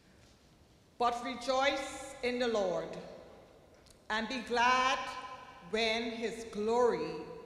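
A woman sings through a microphone in an echoing hall.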